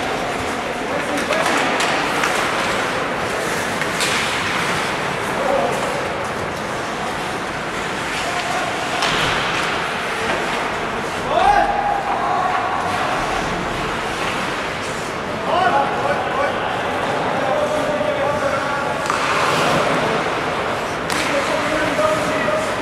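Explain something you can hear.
Hockey sticks clack sharply against the puck and each other.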